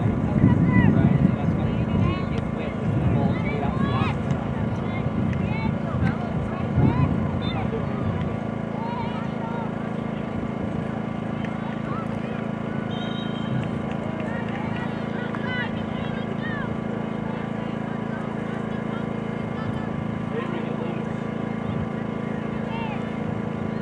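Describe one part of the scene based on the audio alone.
Young women call out to each other far off across an open field.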